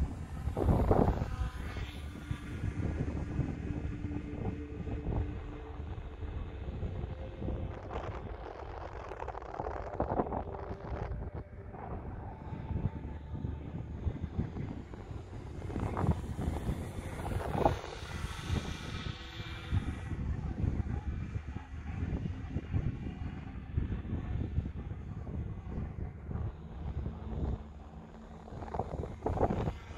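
Wind rumbles in gusts across an open field.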